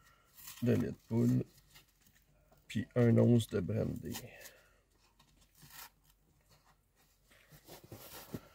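A cardboard carton crinkles as it is torn open.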